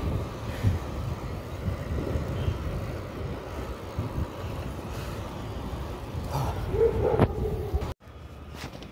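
Wind buffets the microphone in a steady, loud rumble.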